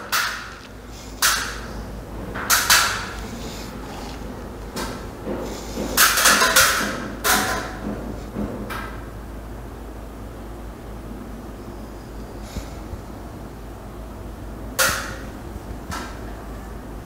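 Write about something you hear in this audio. Plastic wire clips click and snap as they are pressed onto a wall.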